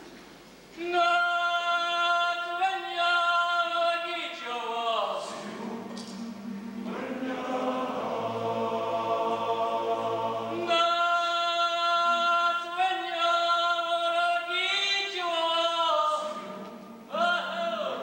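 A young girl sings a song, heard from a distance in a large hall.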